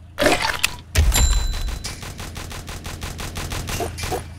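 Rapid gunshots pop in quick, even bursts.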